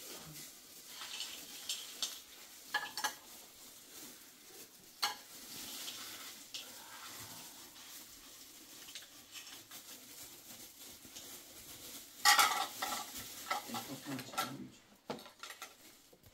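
Plastic bags rustle and crinkle as food is handled.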